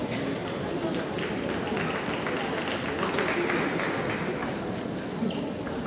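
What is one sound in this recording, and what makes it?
A ping-pong ball clicks against paddles and the table in a quick rally.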